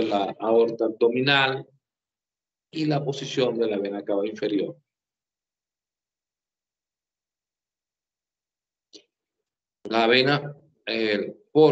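An older man talks calmly over an online call, pausing between phrases.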